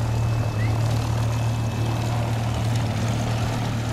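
A propeller plane's engine drones loudly as it flies low overhead.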